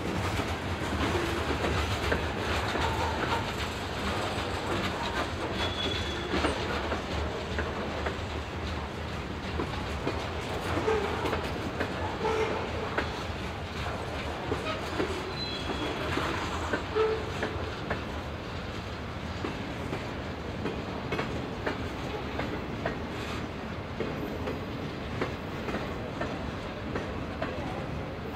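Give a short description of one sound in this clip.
Freight cars rumble steadily past on the rails, close by.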